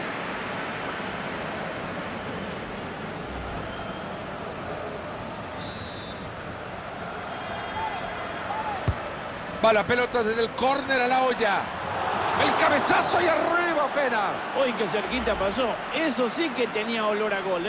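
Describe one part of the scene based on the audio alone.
A stadium crowd roars and murmurs.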